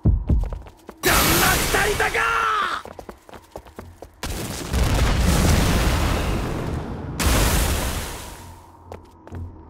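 A burst of energy whooshes and roars loudly.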